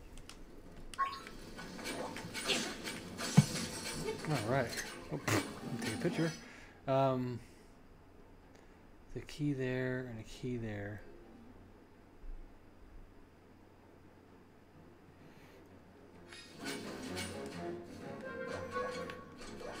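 Lively video game music plays with chiming sound effects.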